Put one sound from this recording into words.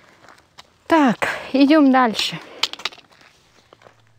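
Footsteps crunch on a gravel path.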